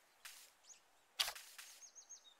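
A short bright chime sounds.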